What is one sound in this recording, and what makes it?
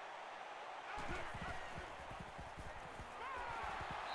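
Football players collide with thuds and knocks.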